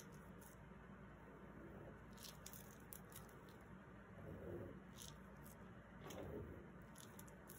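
A gloved hand smears wet paint across a board with a soft squelching rub.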